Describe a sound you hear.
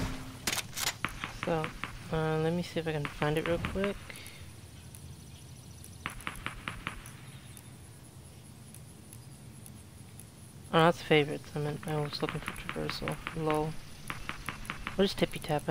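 Soft menu clicks tick quickly, one after another.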